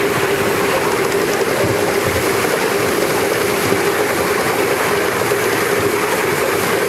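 A small steam locomotive chuffs steadily along close by.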